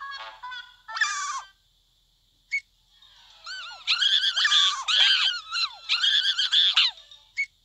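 A high, squeaky cartoon voice chatters quickly and excitedly, close to the microphone.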